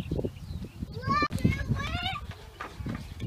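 A young child talks excitedly nearby.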